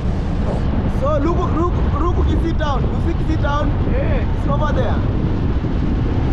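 A man speaks close by with animation, raising his voice over the wind.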